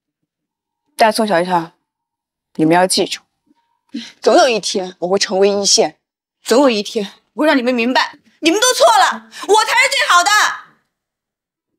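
A second young woman answers sharply.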